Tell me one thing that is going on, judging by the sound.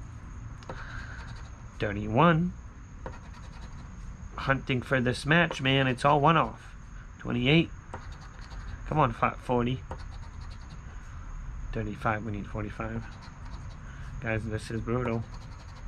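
A coin scratches across a lottery ticket.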